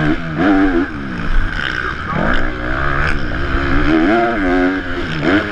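A motorcycle engine revs hard, its pitch rising and falling.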